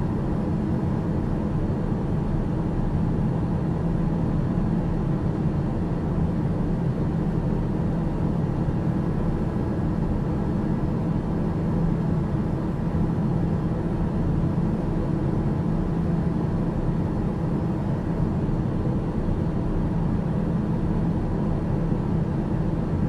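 An aircraft engine drones steadily inside a cabin.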